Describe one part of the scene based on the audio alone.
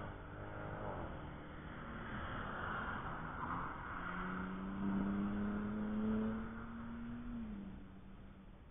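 Another car engine drones in the distance.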